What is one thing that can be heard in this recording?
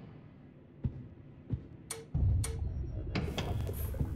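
A metal lever clanks as it is pulled down.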